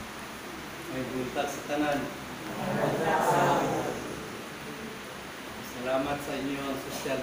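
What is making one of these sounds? A man speaks calmly through a face mask.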